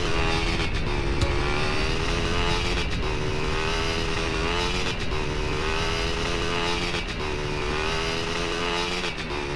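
A dirt bike engine revs steadily as the bike climbs a rocky slope.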